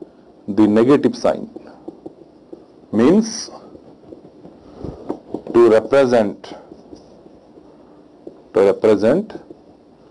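A man lectures calmly in short phrases, heard close through a microphone.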